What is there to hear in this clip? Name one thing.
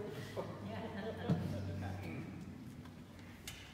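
A brass ensemble plays a low chord in an echoing hall, then fades out.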